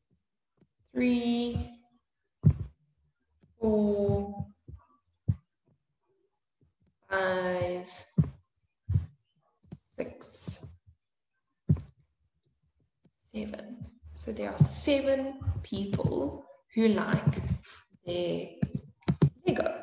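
A young woman speaks calmly and clearly into a microphone, with pauses.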